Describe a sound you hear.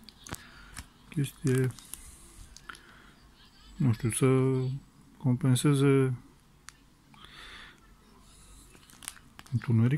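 Small push buttons click softly under a finger.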